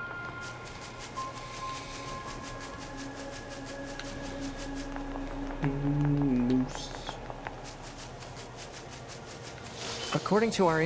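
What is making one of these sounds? Quick footsteps run over grass and paving.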